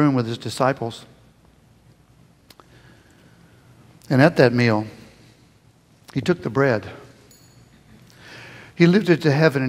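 A man speaks into a microphone in short bursts with pauses, heard in a large hall.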